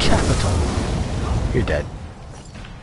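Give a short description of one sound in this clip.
Flames roar and crackle loudly, then stop abruptly.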